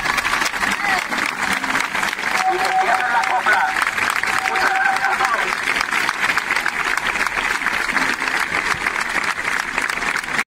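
A large outdoor crowd chants and claps loudly.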